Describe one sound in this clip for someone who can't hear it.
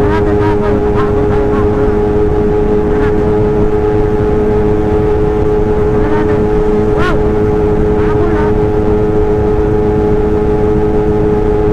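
A motorcycle engine drones steadily at high speed, close by.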